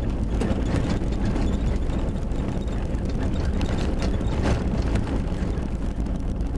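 Tyres crunch and rattle over a rough dirt track.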